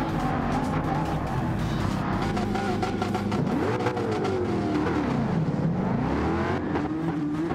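A racing car engine idles and revs up and down.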